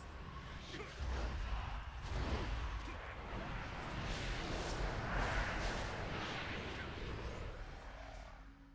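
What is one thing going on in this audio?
Spell blasts strike with loud booms.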